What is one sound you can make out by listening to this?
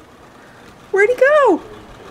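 A large dog lets out a short, high whine that rises and falls.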